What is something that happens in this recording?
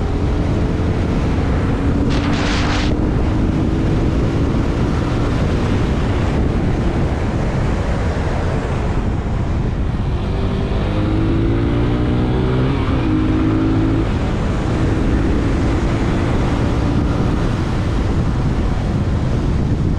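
A motorcycle engine hums steadily and shifts in pitch as it rides along.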